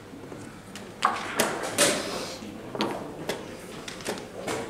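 Wooden chess pieces knock onto a board.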